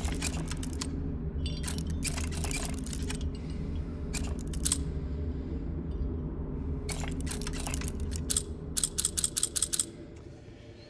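Metal dials of a combination lock click and ratchet as they turn.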